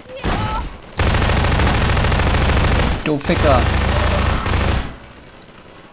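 A rifle fires in rapid, loud bursts.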